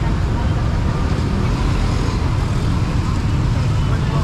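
Traffic rumbles steadily on a busy street nearby.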